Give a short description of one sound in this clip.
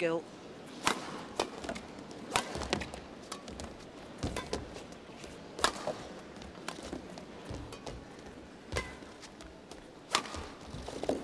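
A shuttlecock is struck sharply back and forth with rackets.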